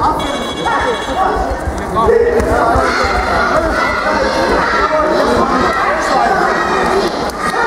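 A crowd of spectators shouts and cheers loudly in an echoing hall.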